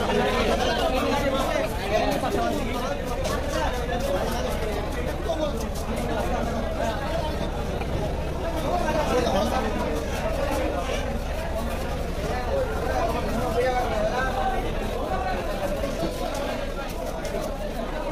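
A knife scrapes scales off a fish.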